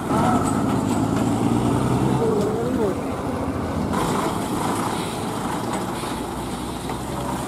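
Heavy truck tyres roll over a rough dirt road.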